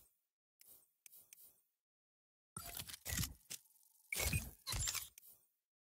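Short electronic blips sound as menu options change.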